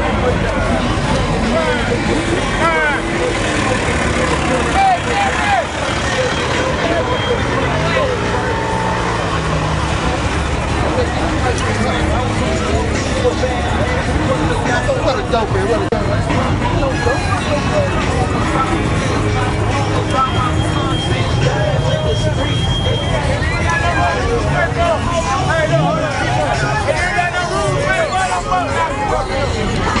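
Car engines idle and rumble low nearby.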